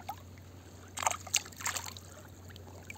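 A hand splashes in shallow water.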